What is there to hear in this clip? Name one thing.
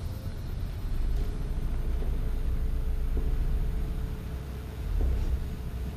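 A heavy metal vault door grinds and rumbles as it is pushed open.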